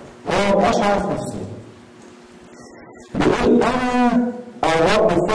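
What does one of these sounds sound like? A man speaks through a microphone and loudspeakers in a large echoing room.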